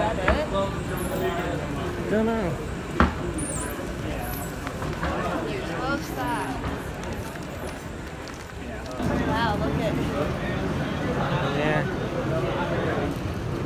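Several people talk while walking outdoors.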